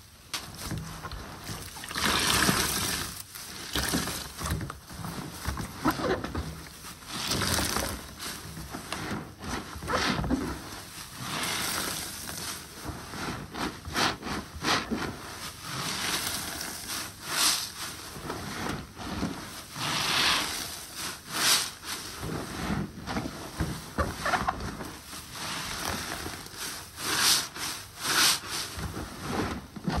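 Rubber gloves squeak and crinkle.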